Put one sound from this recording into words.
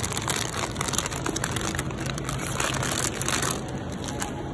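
A plastic bag of potatoes rustles as a hand handles it.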